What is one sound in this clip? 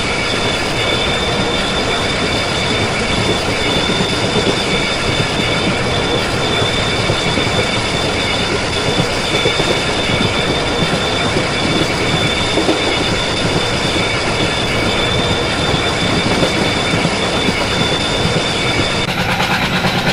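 A train engine hums and rumbles steadily.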